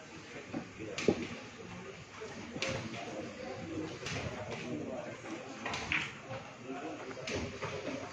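Billiard balls click together when struck by a cue.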